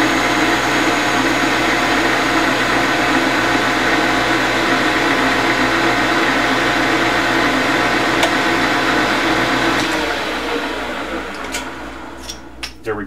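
A lathe hums and whirs steadily, then winds down.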